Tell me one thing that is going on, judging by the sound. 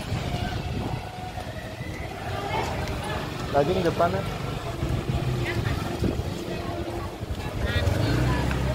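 A motorbike engine putters past at low speed.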